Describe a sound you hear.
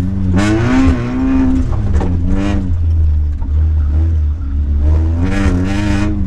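A car engine revs hard, rising and falling with gear changes.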